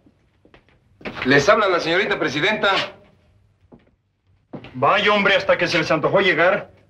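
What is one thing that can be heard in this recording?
A second man talks in a low, earnest voice nearby.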